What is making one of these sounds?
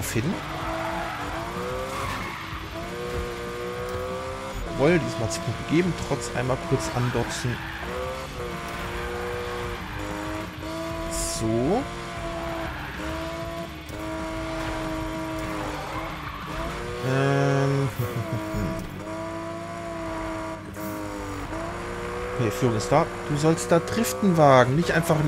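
A car engine roars and revs up and down at high speed.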